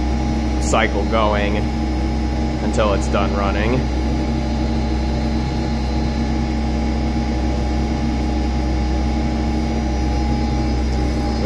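Machinery hums steadily.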